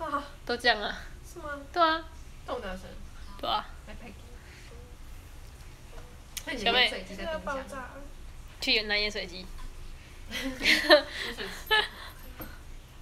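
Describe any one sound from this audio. A young person talks close by, with animation.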